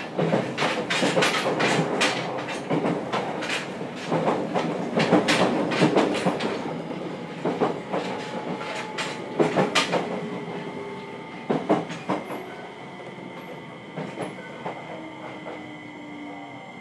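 An electric train motor hums and whines, shifting in pitch.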